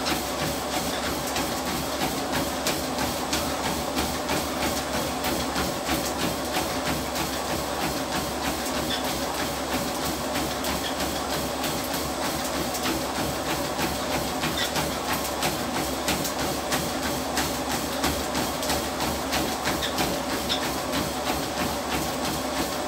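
Feet pound quickly and steadily on a treadmill belt.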